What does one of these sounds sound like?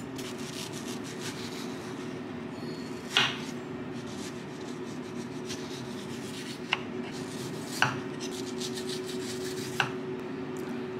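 A knife slices through a mango and taps the board.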